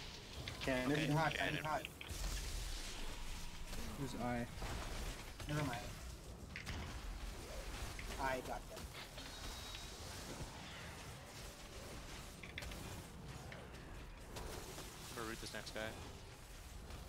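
A young man talks casually into a microphone, in short bursts.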